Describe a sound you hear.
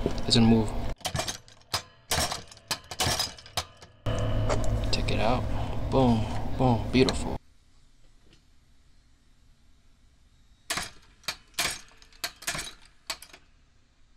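A hand-lever press clicks and thunks as it sets rivets into leather.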